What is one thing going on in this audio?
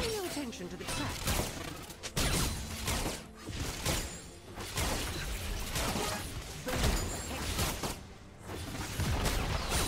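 Fantasy battle effects burst and crackle repeatedly in a game.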